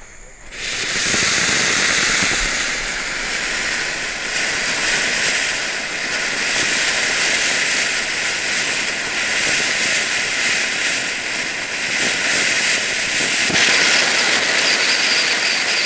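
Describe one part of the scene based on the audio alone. Firework shots crackle and pop.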